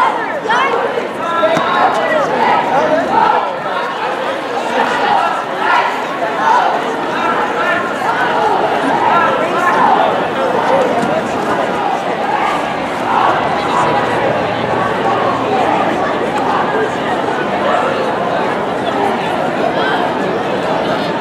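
A large crowd of men and women chatters outdoors.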